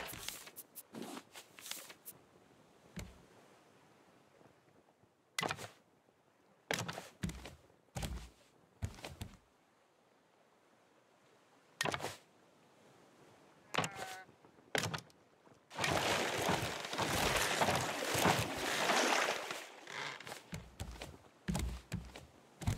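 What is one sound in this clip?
Sharp wooden knocks sound as planks are placed and struck.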